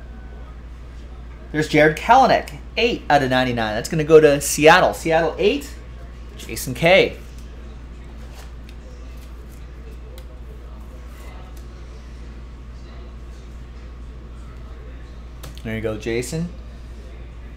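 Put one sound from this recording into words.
Cards slide and shuffle in hands.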